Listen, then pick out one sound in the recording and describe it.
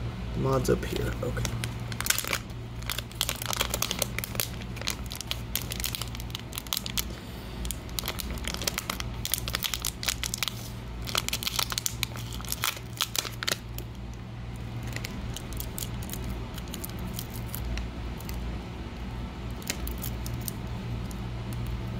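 Plastic wrapping crinkles and rustles in handling.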